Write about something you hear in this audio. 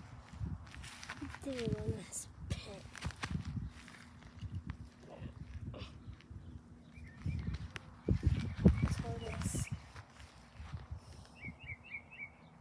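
Footsteps rustle through dry grass and weeds.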